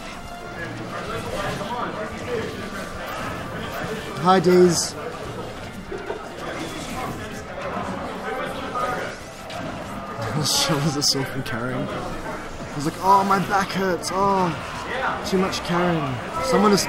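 Fighting game hits and blasts clash and thump.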